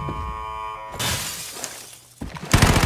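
Window glass shatters and tinkles.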